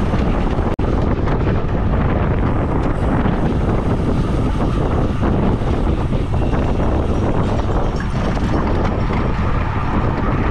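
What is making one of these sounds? Bicycle tyres hum on pavement.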